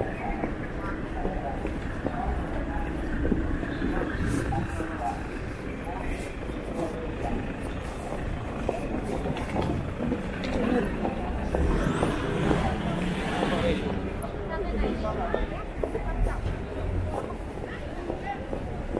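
A crowd chatters in the distance on a busy street.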